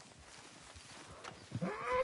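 A horse walks slowly, its hooves thudding on soft ground.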